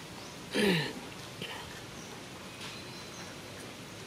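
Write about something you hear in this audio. A small monkey scampers off a rock.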